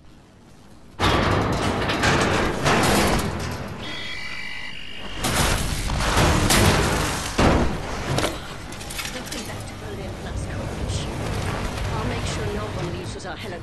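Heavy robot machinery crashes and clanks loudly.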